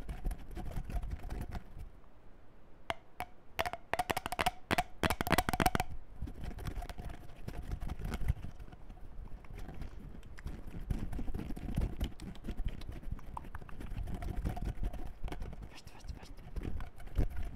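Hands rub and scratch on a furry microphone cover very close up.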